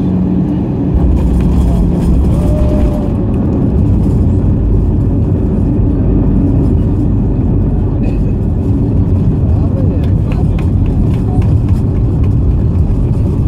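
Wheels thump down and rumble along a runway.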